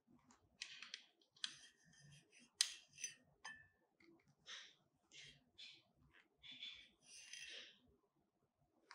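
A leather glove rustles and squeaks against a metal lamp as it is handled.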